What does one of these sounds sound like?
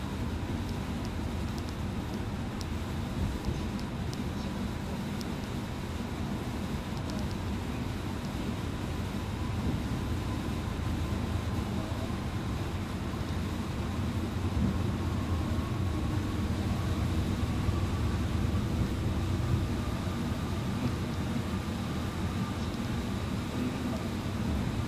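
Heavy rain drums on a windscreen.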